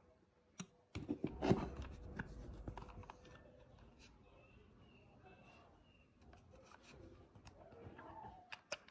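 Fingers rub and tap against a plastic computer mouse.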